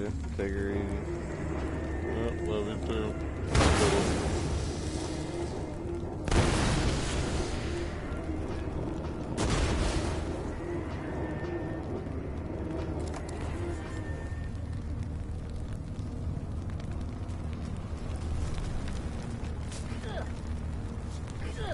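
Fire roars and crackles steadily nearby.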